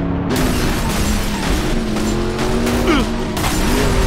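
A car scrapes and bumps against another car.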